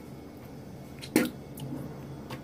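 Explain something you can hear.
A girl splashes water onto her face.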